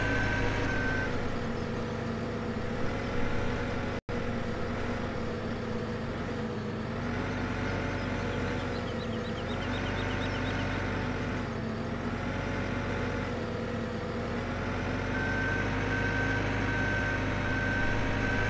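A small loader's diesel engine hums steadily and rises and falls in pitch as it works.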